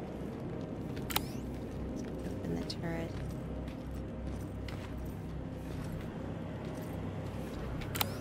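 Footsteps tread slowly over gritty ground.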